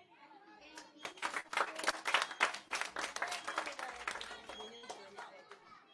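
A group of children clap their hands in rhythm.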